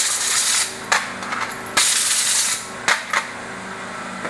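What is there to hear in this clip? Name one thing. Metal engine parts clatter and rattle as they are handled close by.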